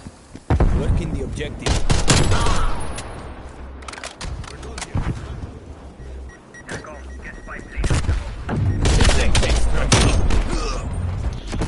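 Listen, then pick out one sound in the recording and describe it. Rapid gunfire cracks in bursts.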